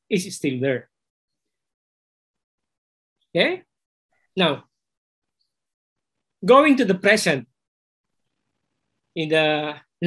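A middle-aged man speaks calmly in short phrases over an online call, with pauses between them.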